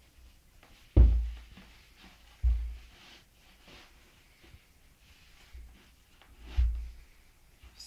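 Rubber boots thud softly on a carpeted floor.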